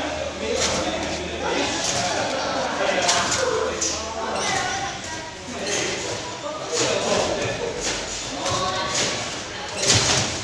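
Young people talk and chatter nearby in a large echoing hall.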